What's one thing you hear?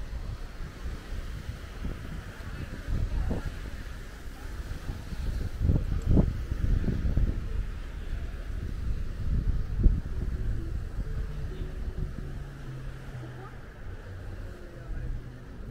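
Small waves wash gently onto the shore.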